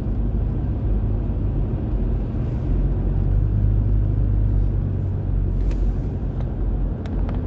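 Road noise rumbles low inside a moving car.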